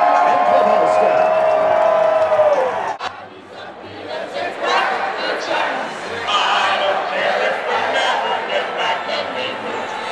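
A large crowd cheers and chatters in a vast, echoing stadium.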